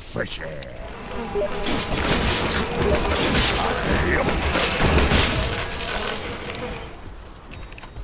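Swords clash and spells burst in a game battle.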